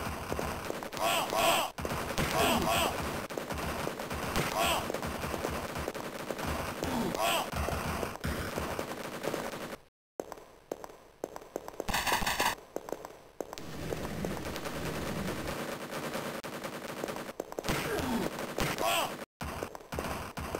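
A weapon fires blasts again and again.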